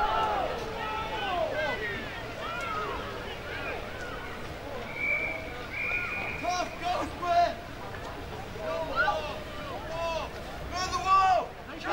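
Several young women shout and call out to each other outdoors.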